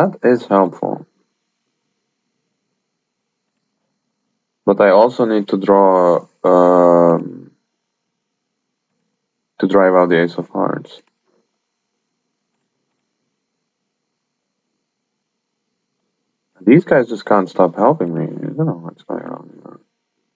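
A young man speaks calmly in bursts, close to a microphone.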